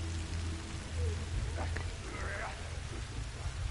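A young man speaks briefly into a microphone.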